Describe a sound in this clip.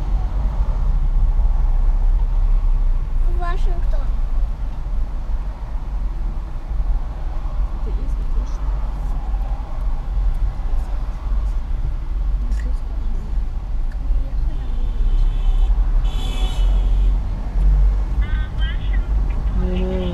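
A car's engine rumbles low and steady while driving on a highway.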